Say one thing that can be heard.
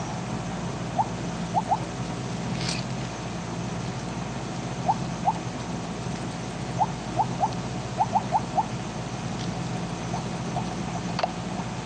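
Short electronic blips sound again and again as pellets are picked up.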